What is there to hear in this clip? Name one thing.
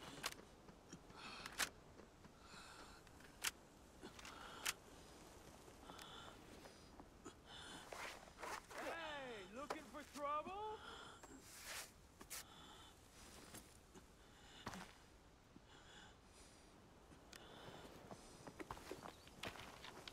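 Footsteps crunch over dirt and rock.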